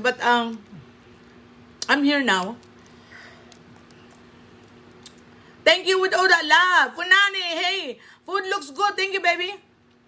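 Crawfish shells crack and snap between fingers.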